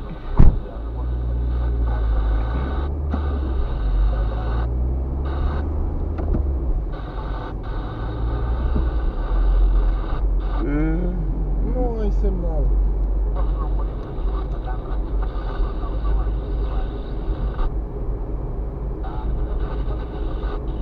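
A car engine rumbles low and steady, heard from inside the car.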